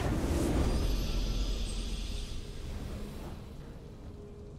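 A triumphant fanfare blares and quickly fades.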